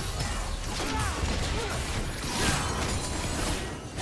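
Magic blasts burst and crackle in quick succession.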